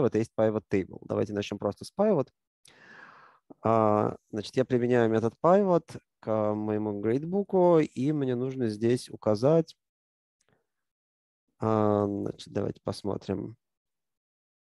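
A man speaks calmly through a close microphone.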